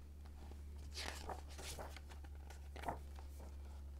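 Paper pages of a book rustle as they turn.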